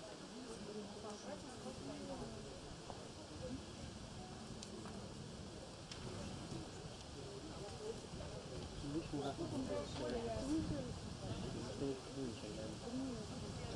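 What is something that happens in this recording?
A woman talks into a microphone over loudspeakers.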